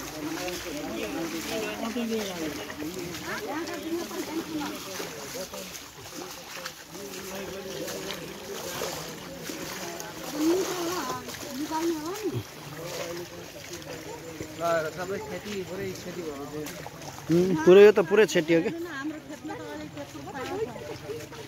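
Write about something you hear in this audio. Several men and women talk nearby outdoors.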